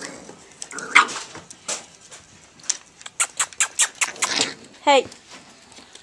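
Puppy claws patter and scrabble on a hard floor.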